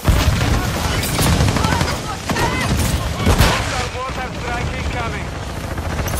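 Shotgun blasts fire in quick bursts.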